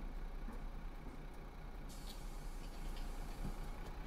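Pneumatic bus doors hiss shut.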